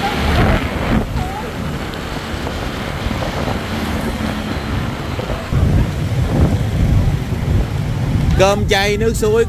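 Motorbike engines hum and traffic rolls by on a street.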